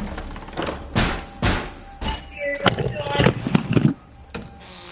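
Wooden boards thud and clatter close by.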